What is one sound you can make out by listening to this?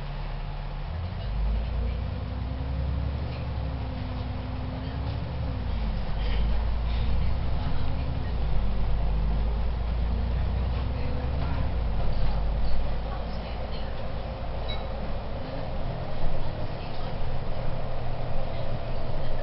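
A bus engine roars and revs up and down as the bus pulls away and drives on.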